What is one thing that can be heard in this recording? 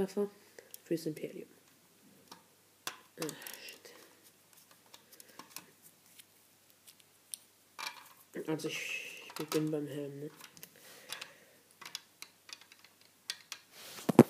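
Small plastic toy pieces click and tap together.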